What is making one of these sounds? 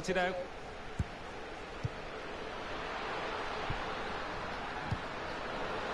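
A football is kicked with short dull thuds.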